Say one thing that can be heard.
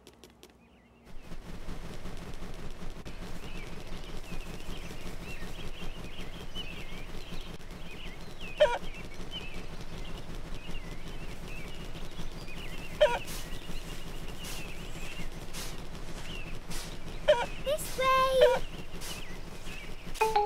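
A hen clucks and squawks.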